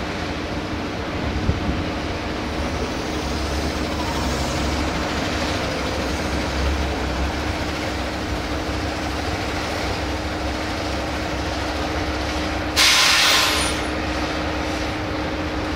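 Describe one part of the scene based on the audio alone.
A heavy truck engine rumbles as the truck drives slowly closer and idles.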